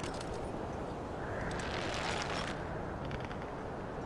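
A climbing rope creaks and rubs as someone pulls up on it.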